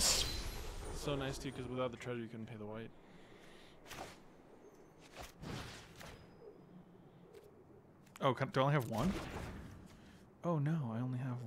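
A man talks casually into a close microphone, in bursts with pauses.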